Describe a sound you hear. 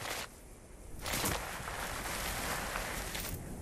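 A body slides along the ground with a rough scraping rush.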